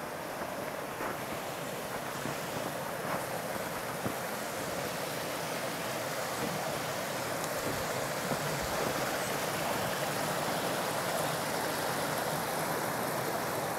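A shallow stream trickles and gurgles close by.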